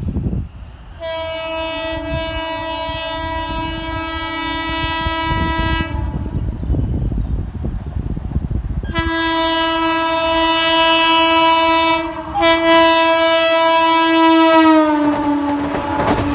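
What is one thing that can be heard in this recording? A train horn blares loudly in long blasts, dropping in pitch as the train passes.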